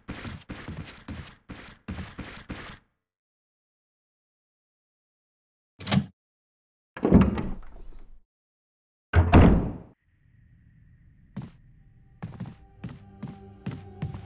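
Footsteps echo on a hard floor.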